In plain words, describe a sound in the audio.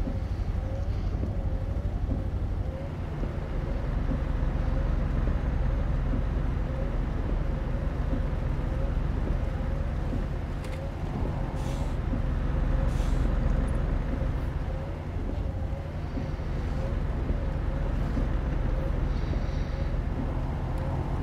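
Windscreen wipers sweep back and forth.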